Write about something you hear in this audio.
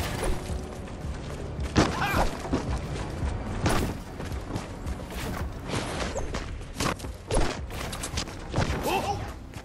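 Footsteps patter quickly on grass and wood.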